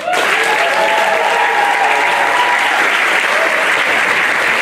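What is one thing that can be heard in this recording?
Young women in the audience cheer and whoop.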